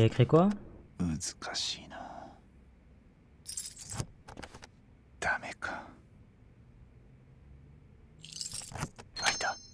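Metal keys jingle and clink on a ring.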